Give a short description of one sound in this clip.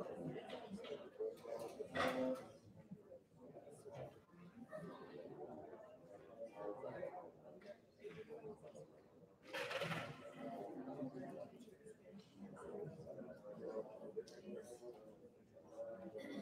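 An audience murmurs and chatters quietly in a large echoing hall.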